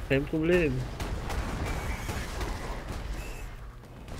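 Magic spells blast and strike enemies with quick thuds.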